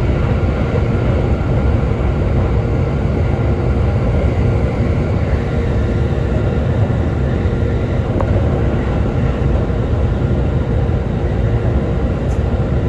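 A train rumbles along steadily, heard from inside a carriage.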